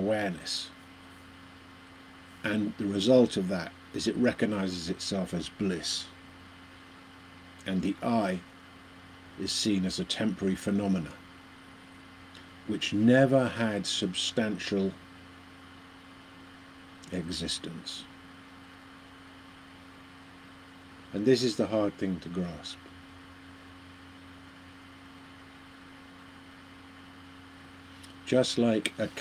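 An elderly man speaks calmly and slowly to a microphone close by, with long pauses.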